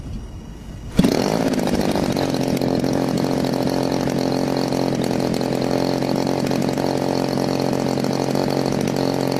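A small model engine starts with a burst and runs at a steady, loud buzz.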